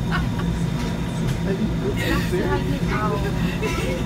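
A young woman laughs and talks with animation close by.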